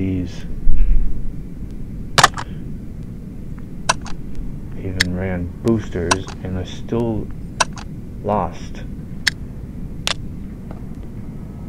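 Short clicks and chimes of a game menu sound as options are tapped.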